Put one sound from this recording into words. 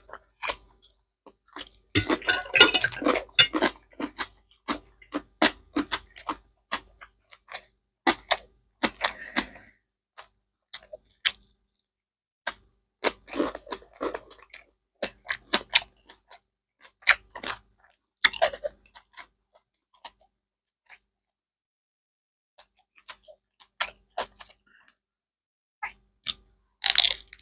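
A woman chews and slurps food close to a microphone.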